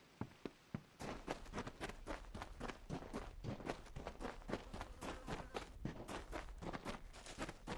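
Running footsteps crunch on gravel.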